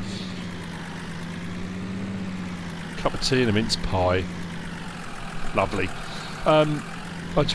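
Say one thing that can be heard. A tractor engine hums steadily as it drives.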